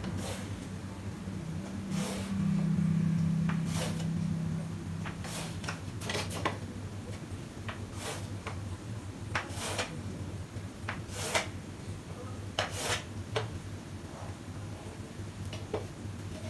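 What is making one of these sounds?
Chalk scrapes and taps against a board in short strokes.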